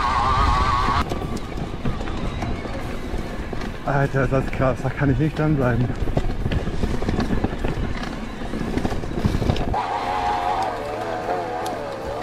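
An electric bike motor whirs with a rising and falling whine.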